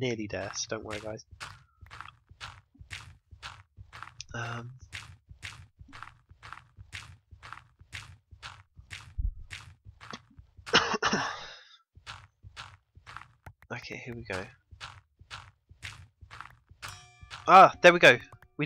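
Dirt is dug out with quick, even crunching taps.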